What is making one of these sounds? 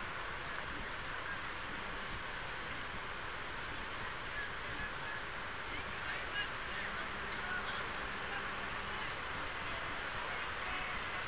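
A crowd of men and women chants and shouts in the distance outdoors.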